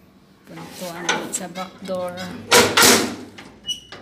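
A metal door bolt scrapes and clanks as it slides open.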